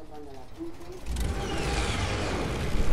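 A propeller plane's engine drones loudly.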